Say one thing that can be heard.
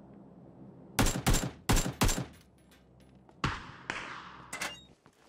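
Loud gunshots ring out in quick bursts.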